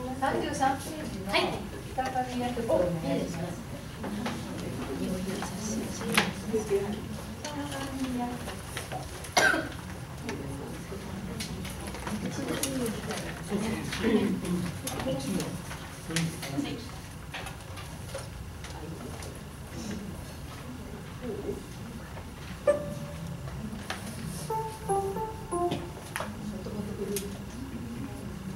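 A man talks calmly nearby in a room with a slight echo.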